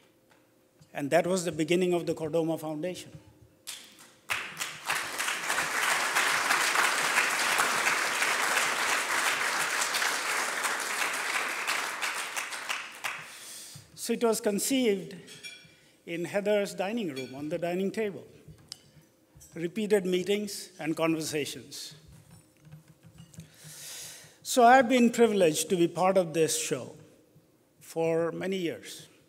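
A middle-aged man speaks calmly into a microphone, with pauses.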